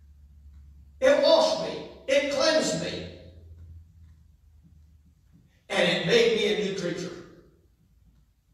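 A middle-aged man speaks with animation in a large echoing room.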